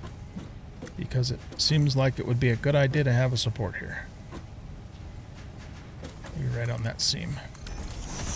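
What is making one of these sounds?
An elderly man talks casually into a microphone.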